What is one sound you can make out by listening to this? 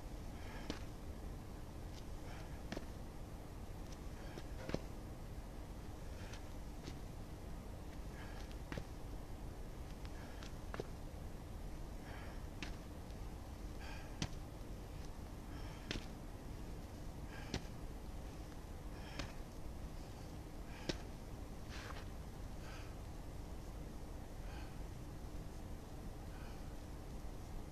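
A small footbag is kicked with soft, quick thuds again and again.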